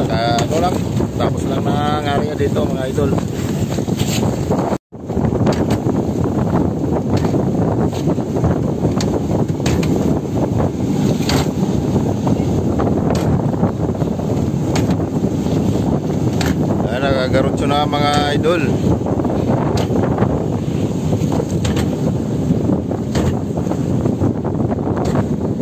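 Wind rushes across the open water.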